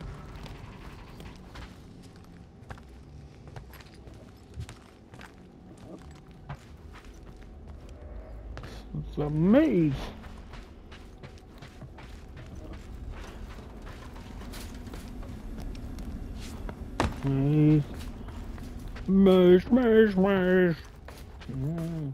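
Footsteps clang softly on a metal floor.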